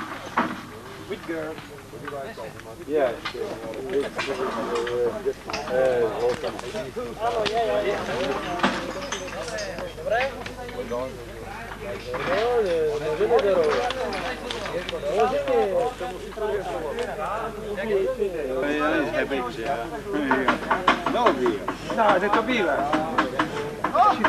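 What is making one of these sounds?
Several men talk with animation close by, outdoors.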